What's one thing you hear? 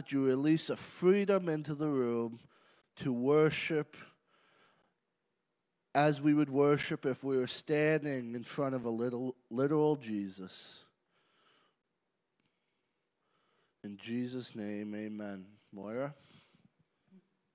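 A man speaks earnestly into a microphone in a large room.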